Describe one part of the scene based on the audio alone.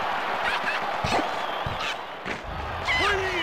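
A game ball is kicked with sharp thumps.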